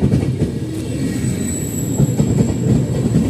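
Train brakes squeal with a thin, high whine.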